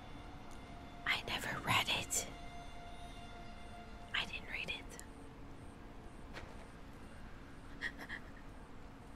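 A young woman speaks into a close microphone in short bursts.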